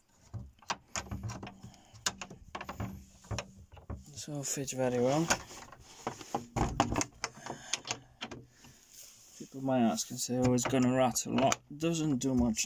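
A metal door latch clicks and rattles.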